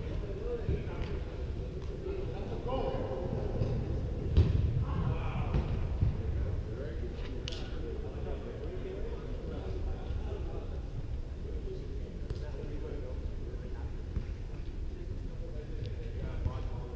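A ball thumps off a player's foot now and then.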